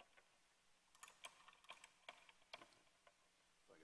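Instrument keys click softly.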